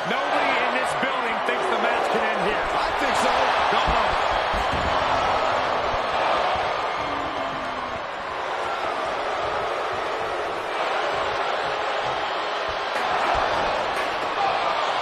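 A crowd cheers and roars loudly throughout.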